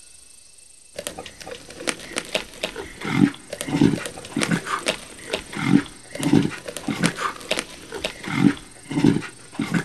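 A big cat chews and tears at meat with wet, rhythmic crunching.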